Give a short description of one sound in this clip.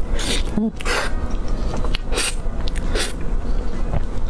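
A young woman chews soft food close to a microphone, with wet smacking sounds.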